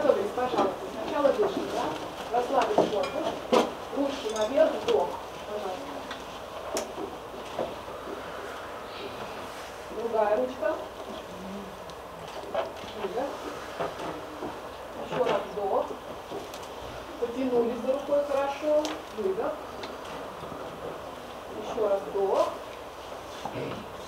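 A group of children sing and chant together in an echoing hall.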